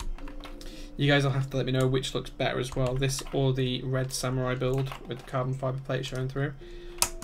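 Keyboard keys clack rapidly under typing fingers.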